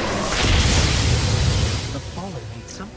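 A crackling energy blast roars and fades.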